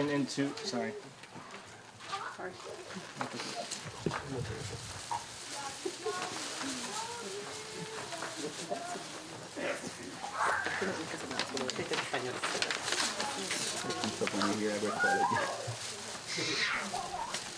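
Several people talk quietly in the background.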